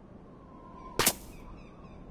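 A short click sounds as a game button is pressed.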